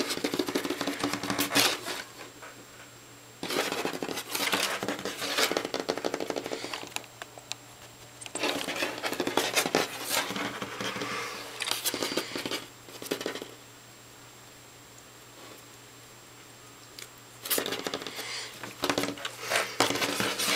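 A pet rat scrabbles over a hard surface.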